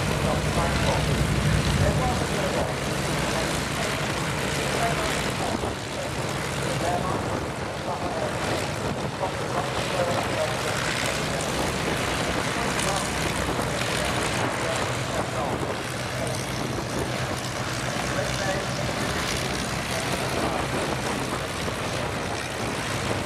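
Propeller aircraft engines drone steadily nearby.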